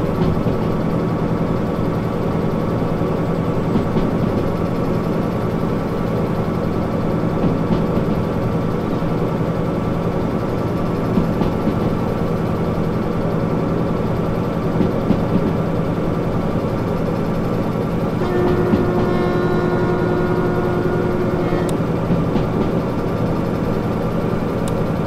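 A diesel locomotive engine drones steadily from inside the cab.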